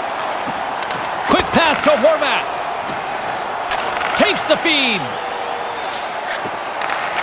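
Hockey sticks knock a puck with sharp clacks.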